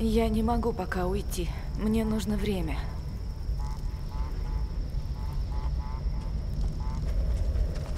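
A bonfire roars and crackles.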